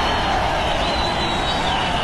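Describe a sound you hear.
A large crowd cheers outdoors.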